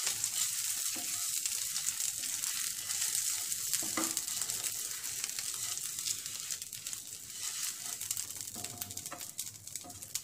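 A spatula scrapes across a pan.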